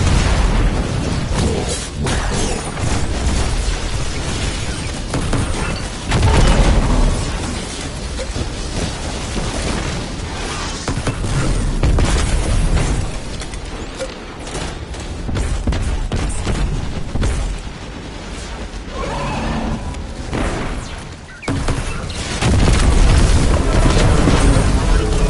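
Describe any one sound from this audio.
Rapid gunfire rattles and blasts in bursts.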